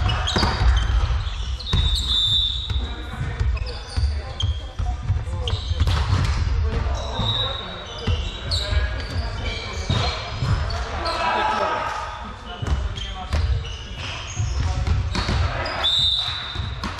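Players call out to one another in the echoing hall.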